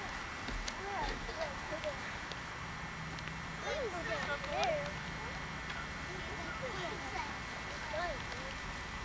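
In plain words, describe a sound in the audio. A young child talks in a high voice nearby.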